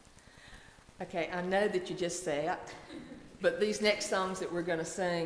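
An elderly woman speaks calmly through a microphone in a large echoing hall.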